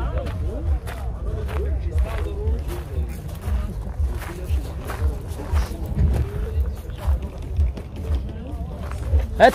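A crowd of men chatters outdoors nearby.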